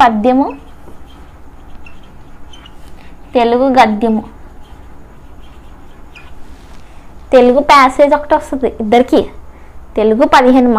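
A young woman speaks clearly and calmly, close to a microphone, in short phrases.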